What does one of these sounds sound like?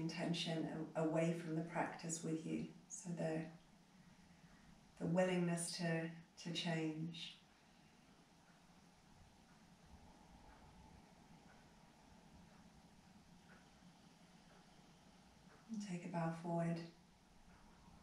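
A woman speaks calmly and softly, pausing between phrases.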